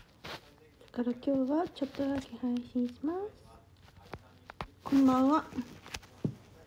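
A young woman speaks softly and close to the microphone.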